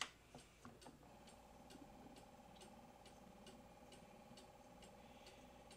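A gramophone plays old music faintly through its horn, with steady held notes.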